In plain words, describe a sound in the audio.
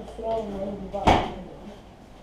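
A cabinet door thuds shut.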